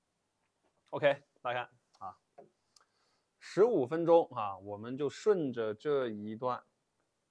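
A man speaks calmly and close by, pausing often.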